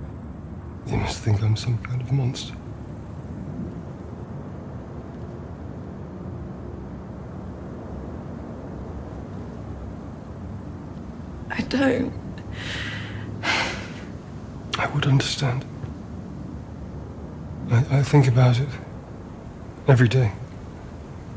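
A middle-aged man speaks quietly and slowly, close by.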